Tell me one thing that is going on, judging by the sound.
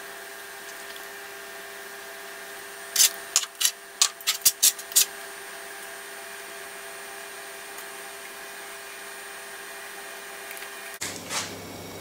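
Thick liquid pours softly into small dishes.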